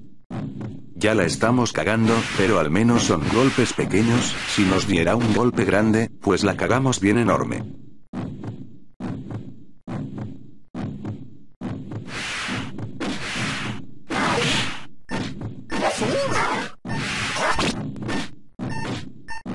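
Swords clash and slash in quick bursts.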